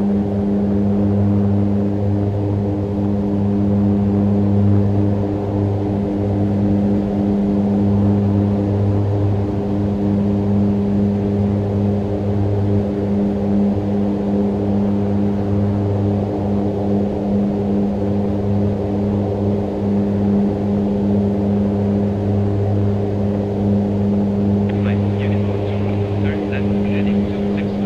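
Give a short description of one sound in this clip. Jet engines drone steadily inside an aircraft cabin.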